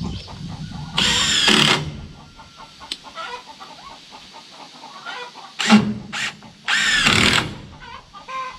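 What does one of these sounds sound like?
A cordless drill drives screws into a wooden post in short bursts.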